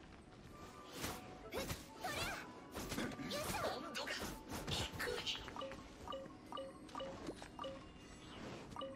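A spear slashes and strikes with sharp hits.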